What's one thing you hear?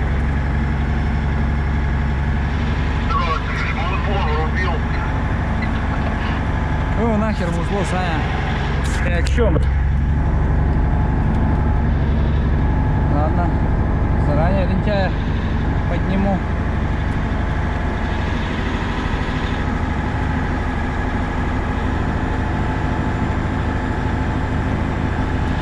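A heavy truck engine drones steadily from inside the cab.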